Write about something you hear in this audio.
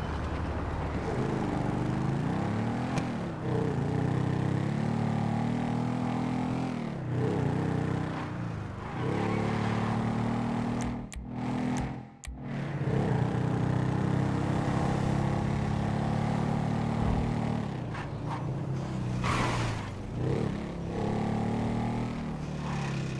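A motorcycle engine revs and roars, rising and falling as the bike rides along.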